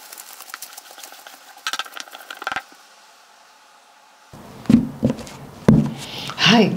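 Cards shuffle and rustle in a woman's hands.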